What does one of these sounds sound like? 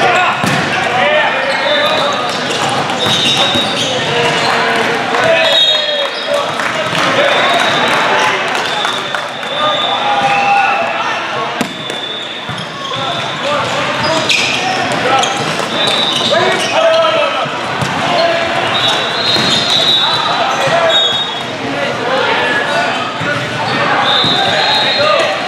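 Young men shout and call out to each other during play.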